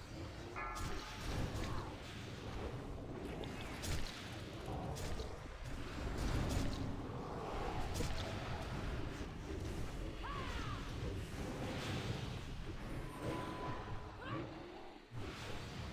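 Flames roar and crackle steadily.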